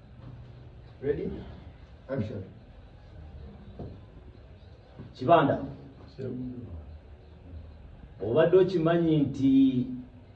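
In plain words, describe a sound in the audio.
A young man speaks nearby in short bursts.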